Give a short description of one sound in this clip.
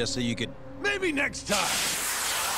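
A man speaks with a taunting tone.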